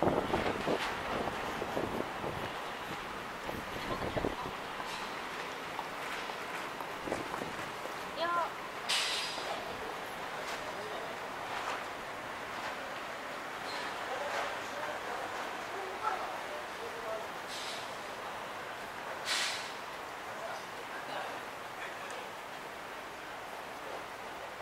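A busy street murmurs steadily outdoors at night.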